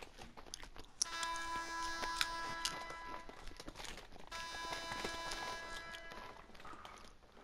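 Upbeat music plays over arena loudspeakers.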